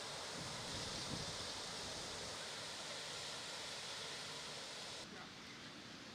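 Water pours steadily over a ledge.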